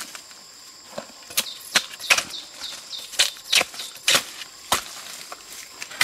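Dry bamboo leaves rustle and crackle as a hand pushes through them.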